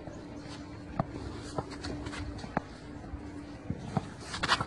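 A racket hits a tennis ball with sharp pops.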